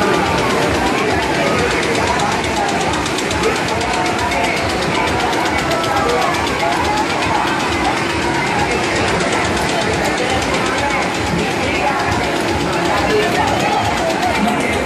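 A fairground ride whirls and rattles loudly.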